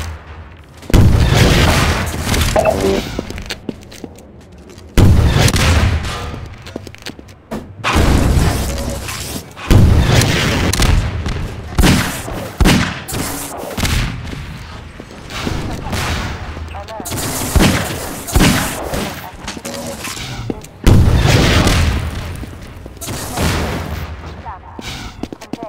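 Rockets explode with loud, rumbling booms.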